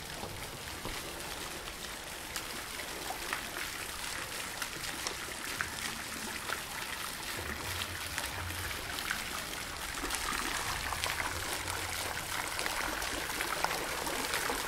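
Water from a fountain splashes steadily into a pool.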